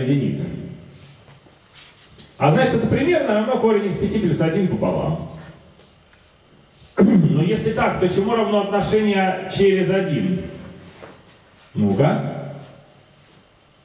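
A man speaks calmly into a microphone in a room with some echo.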